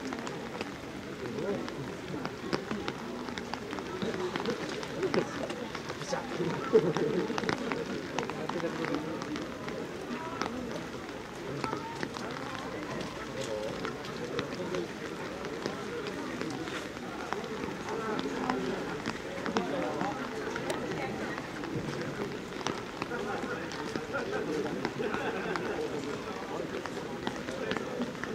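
Rain patters on umbrellas.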